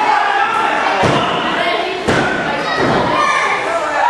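Heavy thuds boom as bodies slam onto a wrestling ring mat.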